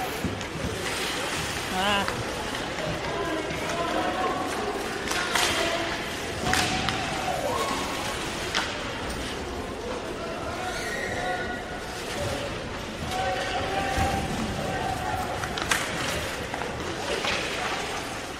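Hockey sticks click and clack against the puck.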